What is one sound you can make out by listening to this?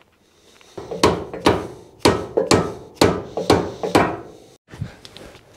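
A rubber mallet strikes metal several times in quick succession.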